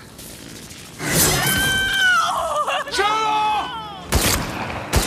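A young woman screams in distress.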